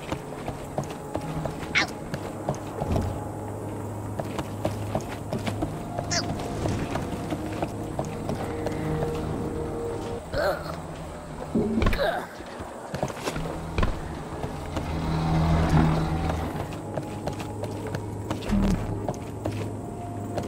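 Footsteps tap on wooden planks.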